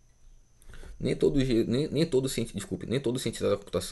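A man speaks close to a microphone with animation.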